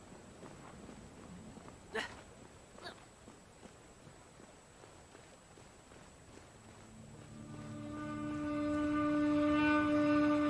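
Footsteps scuff on stony ground.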